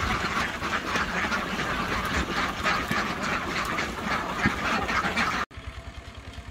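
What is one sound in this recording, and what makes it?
A large flock of ducks quacks loudly and constantly nearby.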